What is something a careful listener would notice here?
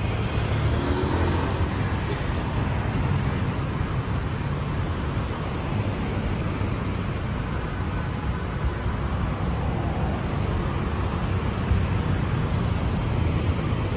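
City traffic hums steadily along a nearby street.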